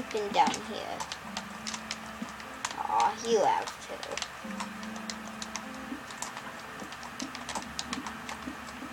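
Game sounds click and tap steadily from a television speaker.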